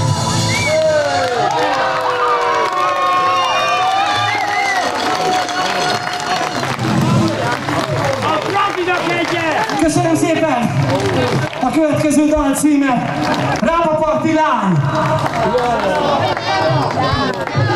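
A man sings into a microphone over a band.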